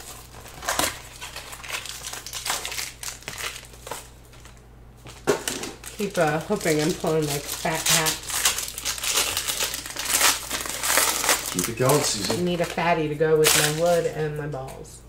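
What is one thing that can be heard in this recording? Cardboard packs rustle and tap as they are handled.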